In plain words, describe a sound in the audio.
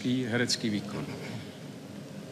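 A man speaks briefly into a microphone in a large hall.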